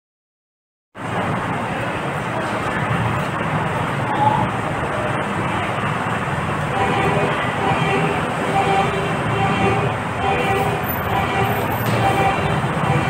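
Karaoke music plays through loudspeakers.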